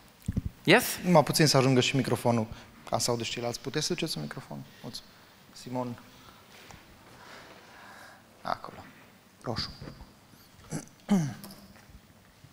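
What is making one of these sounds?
A man speaks into a microphone with animation, heard through loudspeakers in an echoing hall.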